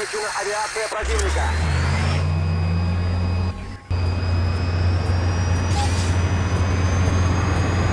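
A helicopter engine hums and rotor blades thrum steadily.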